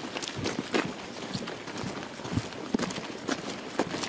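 Boots crunch on a gravel track as several people march.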